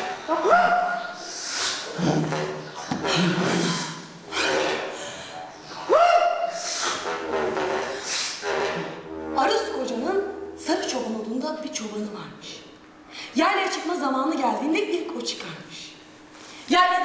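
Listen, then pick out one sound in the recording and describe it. Young women sing with feeling in an echoing hall.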